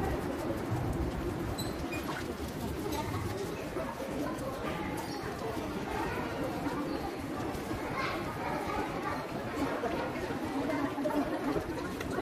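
A crowd murmurs throughout in a large echoing hall.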